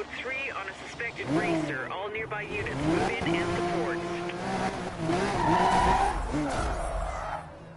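A sports car engine revs and roars.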